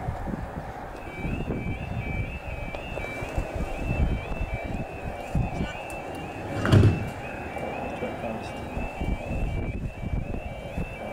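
A level crossing alarm warbles steadily.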